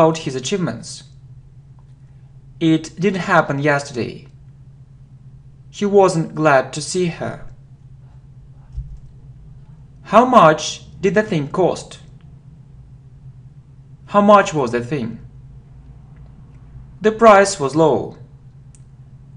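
A man speaks calmly and clearly into a close microphone, in short phrases with pauses between them.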